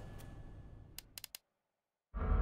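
A game menu clicks as the selection moves.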